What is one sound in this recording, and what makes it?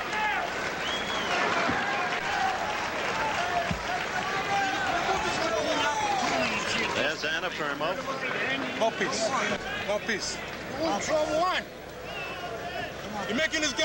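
A large crowd murmurs and chatters in a big echoing arena.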